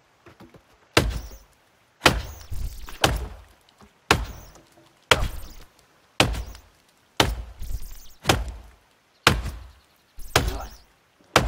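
Blows thud against a tree trunk at a steady pace.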